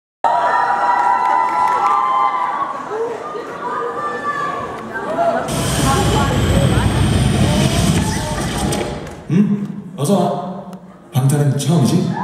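Music plays loudly through loudspeakers in a large hall.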